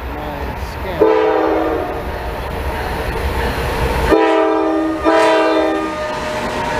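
A train horn blares loudly in long blasts.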